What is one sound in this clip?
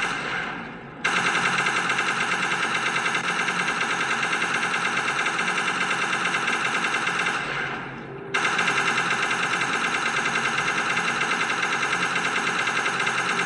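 Rapid electronic gunfire rattles from a video game.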